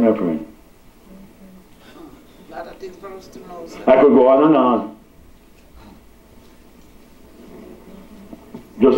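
An older man speaks through a microphone in short bursts with pauses.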